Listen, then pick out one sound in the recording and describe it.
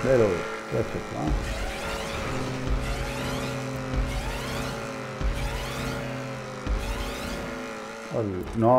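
A car engine revs hard and shifts gears as it speeds along.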